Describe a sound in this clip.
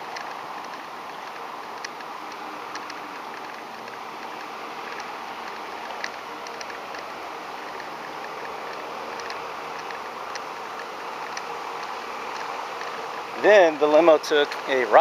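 Wind rushes steadily past while riding outdoors.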